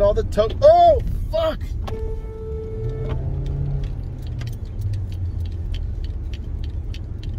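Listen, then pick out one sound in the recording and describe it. A car engine hums low and steady from inside the cabin.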